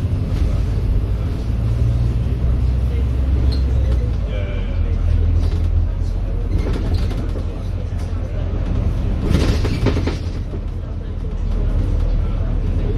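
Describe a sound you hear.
A vehicle's engine rumbles steadily while driving along a road.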